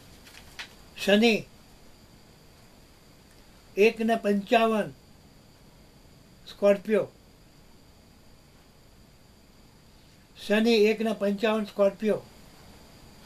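An elderly man speaks calmly in short phrases close by, with pauses between them.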